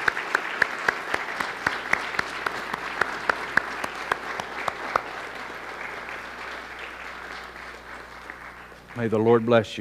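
An audience applauds in a large room, and the applause slowly fades.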